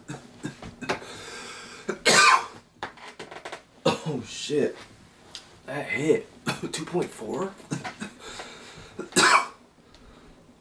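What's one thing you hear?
A young man groans and whimpers up close, as if upset.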